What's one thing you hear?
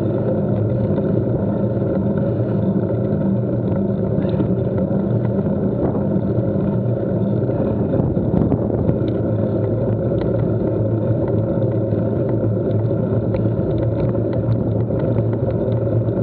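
Wind rushes across the microphone outdoors.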